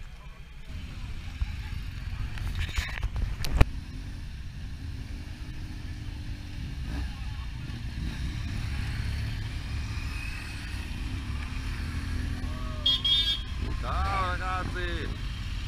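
Motorcycles pull away one after another outdoors.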